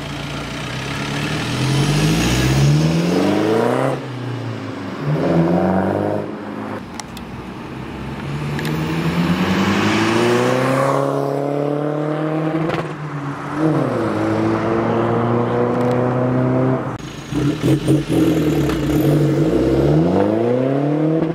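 A sports car engine roars as it accelerates hard, rising in pitch and dropping with each gear change.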